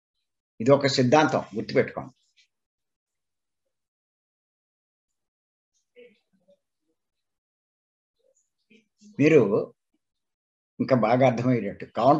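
An elderly man speaks with animation over an online call, in short bursts with pauses.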